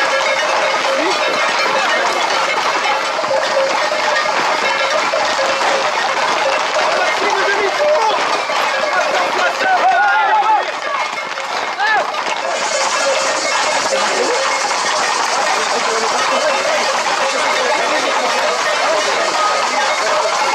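A crowd of men and women shouts and chatters loudly outdoors.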